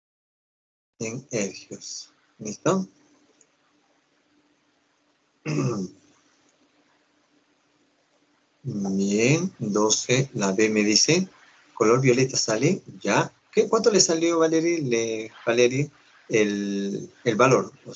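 A man speaks calmly through an online call, explaining.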